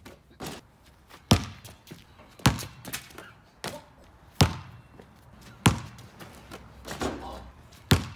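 A basketball clangs off a hoop's rim and backboard.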